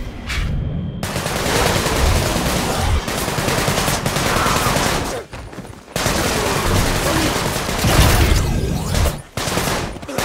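Guns fire in quick bursts.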